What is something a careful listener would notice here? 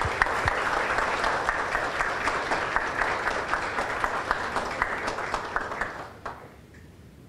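A crowd applauds warmly.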